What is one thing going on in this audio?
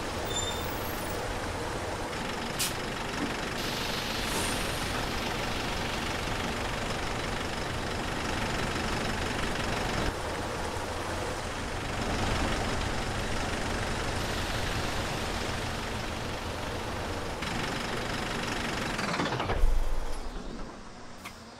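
A diesel city bus engine idles with a low rumble.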